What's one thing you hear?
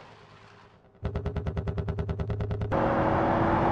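A buggy engine rattles in fast, even pulses.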